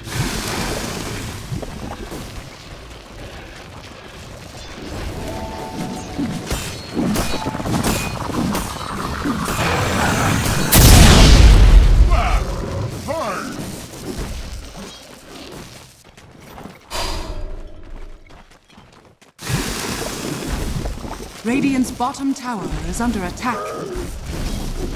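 Game spell effects whoosh, crackle and boom in a battle.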